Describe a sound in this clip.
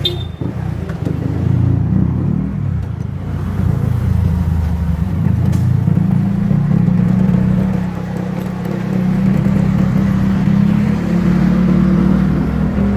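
A motorcycle engine runs close by, revving up and down as it rides.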